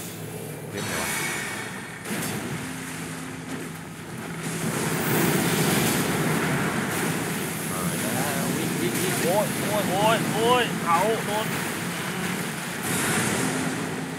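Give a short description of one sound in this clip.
Magic flames roar and crackle in loud bursts.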